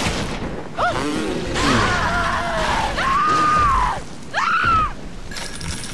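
Flames burst out and roar.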